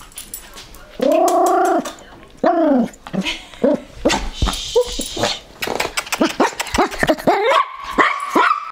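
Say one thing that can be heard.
A small dog whines and yelps up close.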